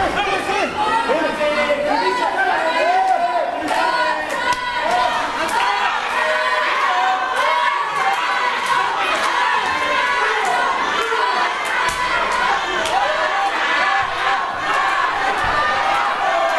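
A crowd of men and women shouts and cheers indoors.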